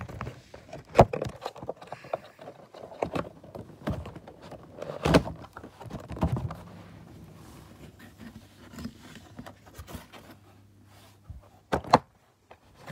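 Something knocks against a cardboard box.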